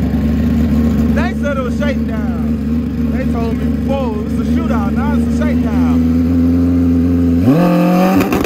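A motorcycle engine idles loudly, close by.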